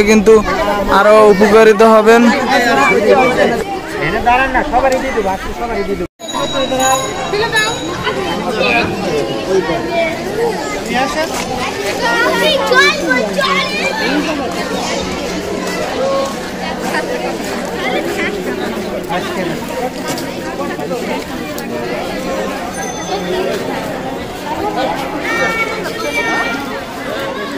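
A crowd of women and men chatter all around, outdoors.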